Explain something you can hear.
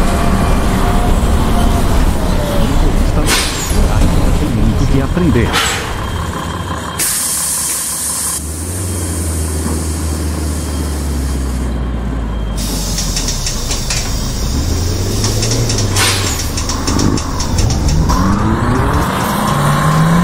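A bus engine rumbles and hums.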